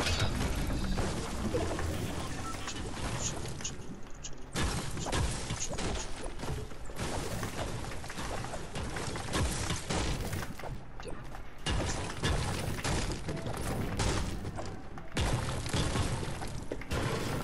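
A pickaxe strikes objects with repeated sharp clangs and thuds.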